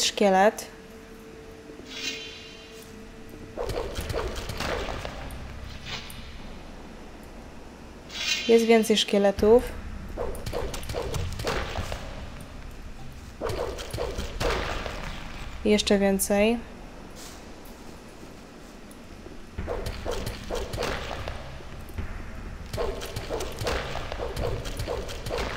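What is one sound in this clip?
Footsteps thud on a stone floor.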